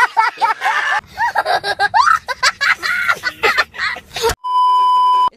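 A young child laughs and wails loudly.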